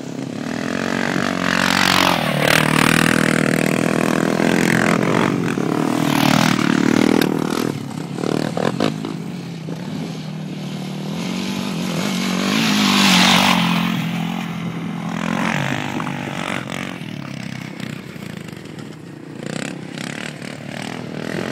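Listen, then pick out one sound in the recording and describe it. A quad bike engine revs loudly and roars past close by.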